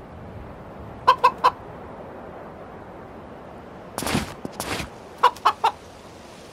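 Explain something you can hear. A rooster squawks in short, sharp bursts.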